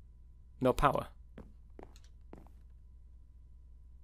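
A block is placed with a soft thud.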